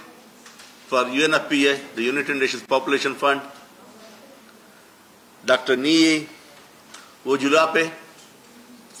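A man speaks formally into a microphone, heard through a loudspeaker in a room.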